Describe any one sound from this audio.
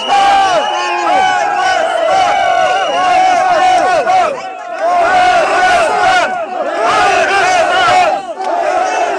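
An elderly man shouts loudly and angrily close by.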